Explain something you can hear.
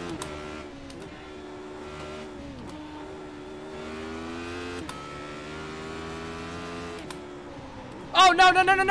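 A racing car engine drones and changes pitch as gears shift.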